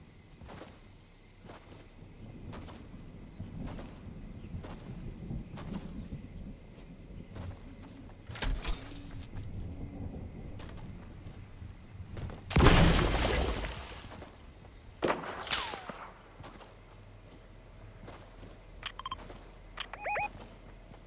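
A hoverboard hums and whooshes as it glides over grass.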